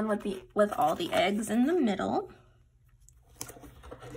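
A sticker peels off a backing sheet.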